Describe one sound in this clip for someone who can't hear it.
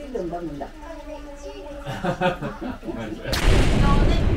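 A baby babbles a wavering sound close by.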